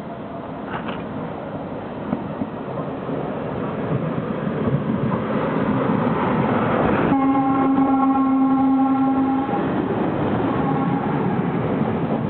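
A train rumbles past close by, its engine and wheels growing loud.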